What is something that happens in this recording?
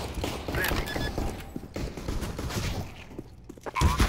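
Electronic keypad beeps sound as a bomb is armed.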